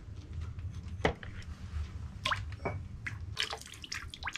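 Clay pots clunk as they are set down on wooden boards.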